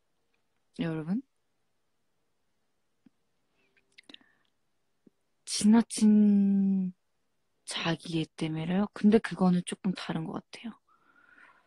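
A young woman speaks softly and playfully close to a microphone.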